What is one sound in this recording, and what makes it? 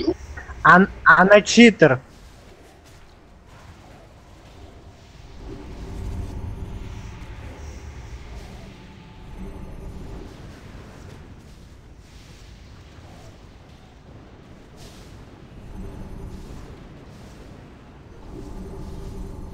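Spells crackle and hum during a fight.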